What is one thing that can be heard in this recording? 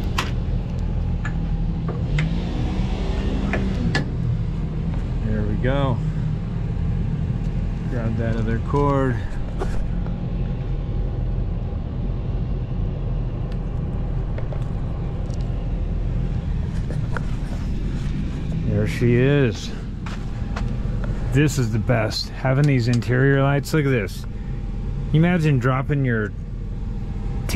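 An engine idles nearby with a steady low rumble.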